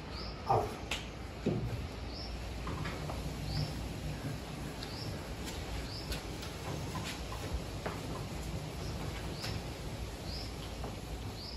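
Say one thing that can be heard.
A board is rubbed with an eraser in short strokes.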